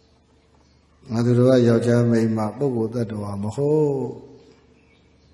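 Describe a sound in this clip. A man chants in a low, drawn-out voice through a microphone.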